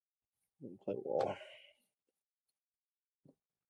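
Playing cards slide and tap softly on a table.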